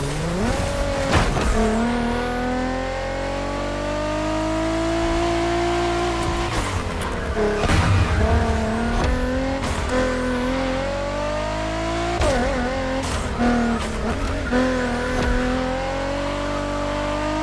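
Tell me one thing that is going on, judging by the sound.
Car tyres screech as the car slides through bends.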